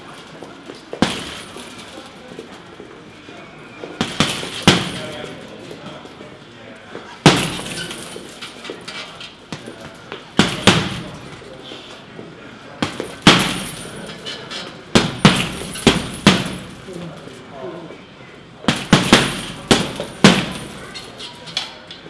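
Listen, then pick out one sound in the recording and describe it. Gloved punches thud against a heavy punching bag in bursts.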